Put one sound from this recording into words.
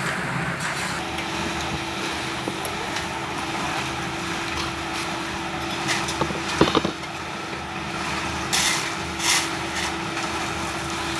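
A concrete mixer drum hums steadily.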